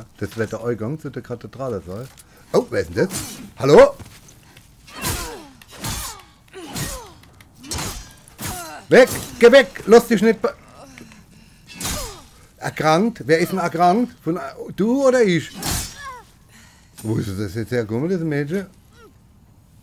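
Blades clash and slash in a fierce fight.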